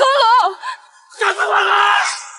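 A man shouts energetically from a distance.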